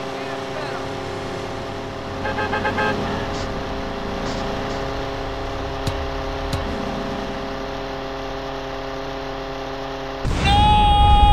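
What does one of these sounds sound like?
A small propeller plane engine drones steadily.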